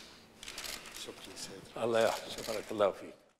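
An elderly man speaks briefly and warmly, close by.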